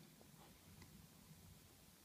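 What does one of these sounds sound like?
A ball rattles around a plastic track toy.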